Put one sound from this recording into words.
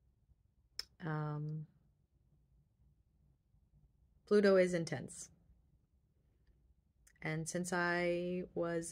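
A young woman speaks close by, calmly, in short bursts with pauses.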